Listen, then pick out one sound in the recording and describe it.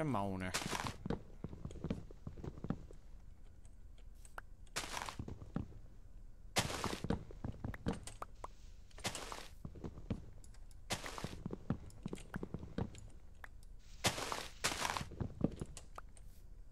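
An axe chops wood with quick, repeated hollow knocks.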